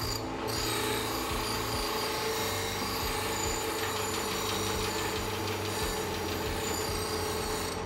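Metal grinds against a spinning stone with a harsh hiss.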